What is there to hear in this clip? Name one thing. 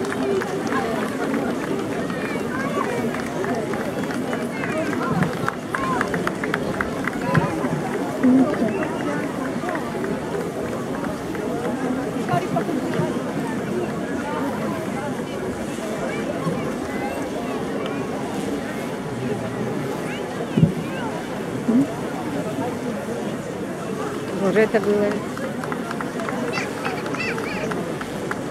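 A large crowd chatters outdoors.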